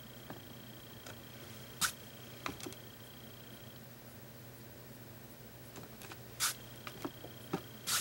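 A paintbrush brushes softly over canvas.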